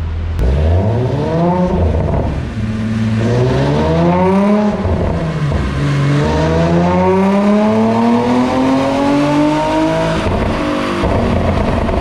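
A sports car engine revs up and down hard, loud and close.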